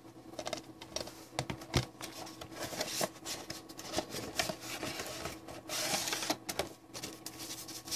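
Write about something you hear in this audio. A plastic case knocks against a wooden table.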